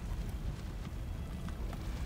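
A fire roars in a low, steady rumble.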